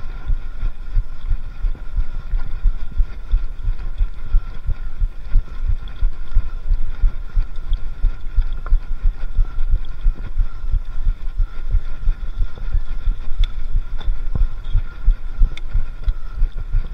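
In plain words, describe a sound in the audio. Wind buffets a microphone in low, rumbling gusts.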